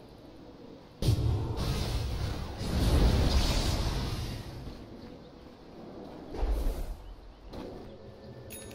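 Heavy impacts and explosions boom during a fight.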